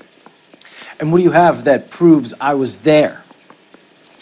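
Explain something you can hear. A younger man answers with animation.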